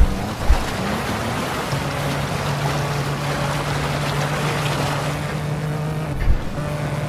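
Tyres skid and hiss through a spray of water.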